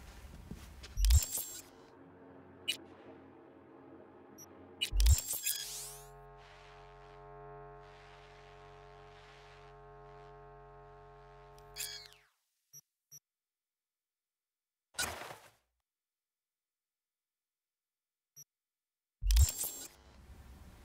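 A sharp electronic whoosh sounds as a menu opens and closes.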